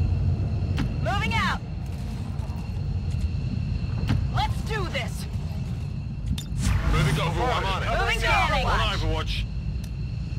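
Short warbling electronic chirps sound now and then.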